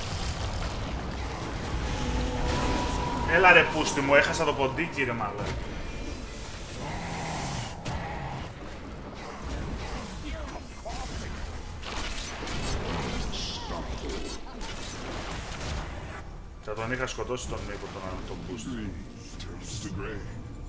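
Game spells and attacks crackle and clash.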